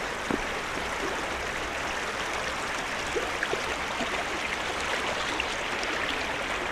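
Shallow water babbles and splashes steadily over stones.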